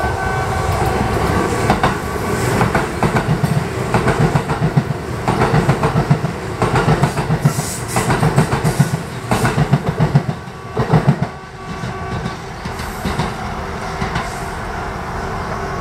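An electric express train rolls past close by.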